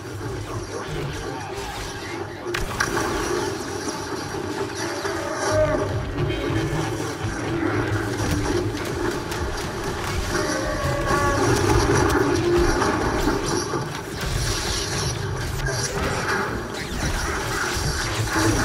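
Blaster bolts fire and zap past.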